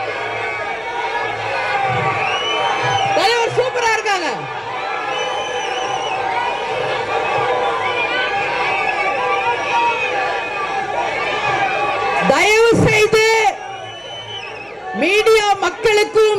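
A woman speaks loudly and with animation into a microphone over loudspeakers.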